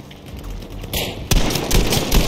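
A pump-action shotgun fires a loud blast.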